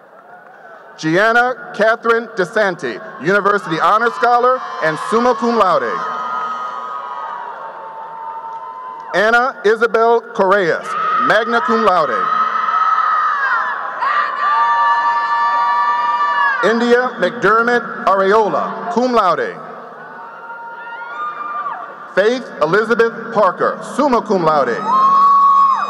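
A man announces names through a loudspeaker in a large echoing hall.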